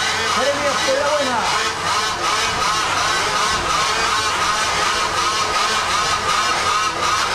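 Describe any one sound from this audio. Small motorbike engines buzz and whine nearby.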